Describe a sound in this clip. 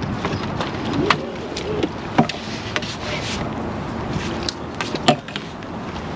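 A landing net knocks and clatters.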